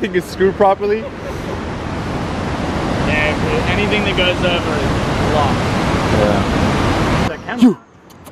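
Rushing water roars loudly.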